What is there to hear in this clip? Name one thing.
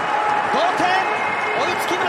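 A man shouts in celebration nearby.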